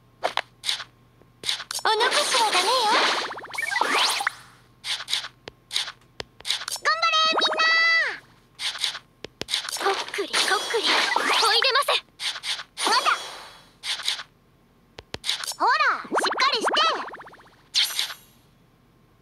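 Sword slashes and hits sound in quick bursts.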